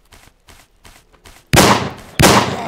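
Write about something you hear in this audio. A shotgun clicks as it is broken open.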